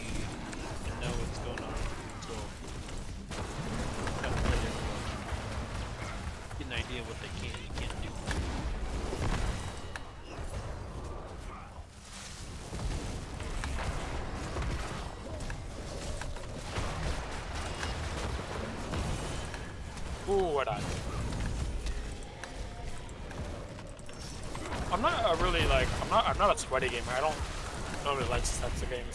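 Game battle effects crackle and blast throughout.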